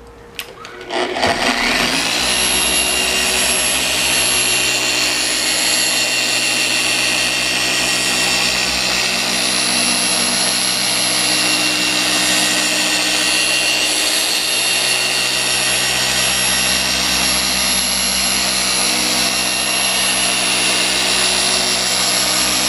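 An electric polisher starts up and whirs steadily against a car's paintwork.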